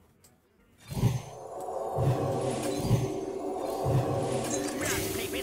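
A magical spell bursts with a bright, ringing shimmer and rumbling thuds.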